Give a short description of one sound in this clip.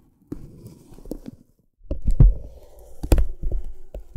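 Thin paper crinkles and rustles as fingers move it.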